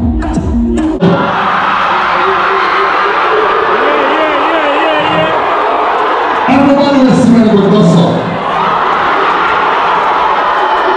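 A large crowd of children sings and cheers loudly in an echoing hall.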